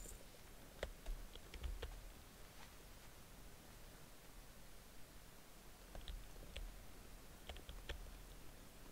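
Footsteps tap on the ground at an uneven pace.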